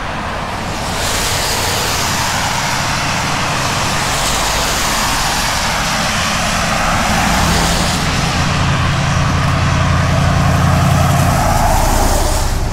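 Car tyres hiss along a wet road as vehicles pass close by.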